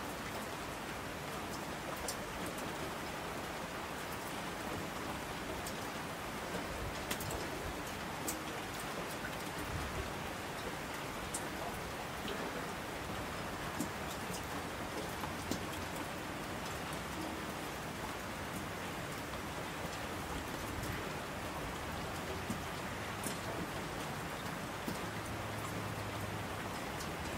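Mountain streams rush and roar down the slopes.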